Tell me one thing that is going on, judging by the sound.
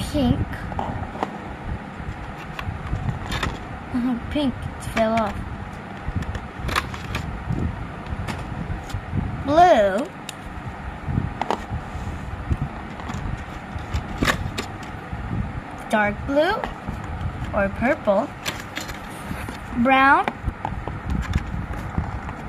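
Plastic marker pens are set down and tap on cardboard.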